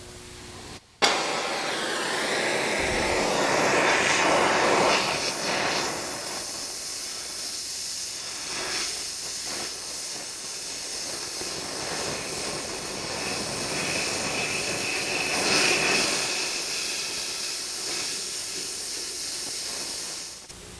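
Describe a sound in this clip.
A gas welding torch hisses and roars steadily.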